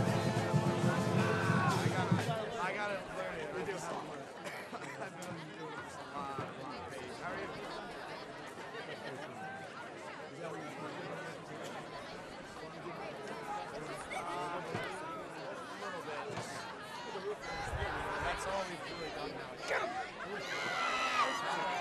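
A crowd of young men and boys chatter and call out nearby outdoors.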